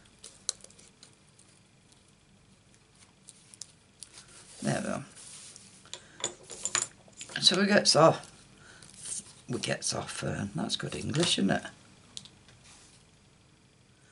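Hands rustle and tap stiff paper on a table.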